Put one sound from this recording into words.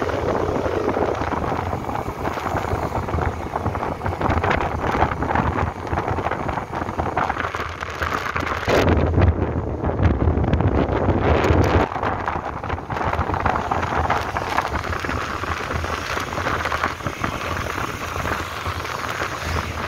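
Wind rushes loudly past a moving motorcycle.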